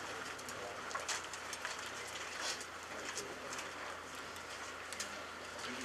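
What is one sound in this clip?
Cloth rustles and crinkles as it is smoothed out.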